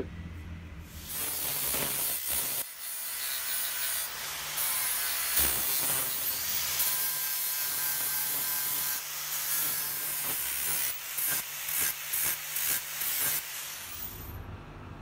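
An angle grinder whines as it grinds metal.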